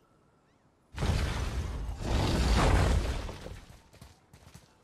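Heavy stone doors grind and rumble open.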